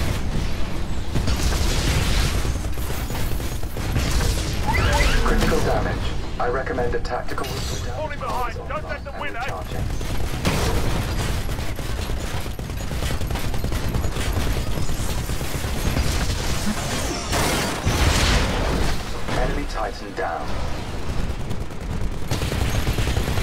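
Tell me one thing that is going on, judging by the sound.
A heavy gun fires rapid bursts.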